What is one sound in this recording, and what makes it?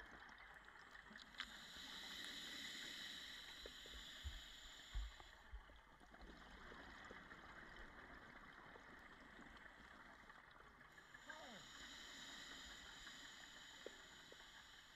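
Air bubbles from a diver's breathing gear gurgle and hiss underwater in bursts.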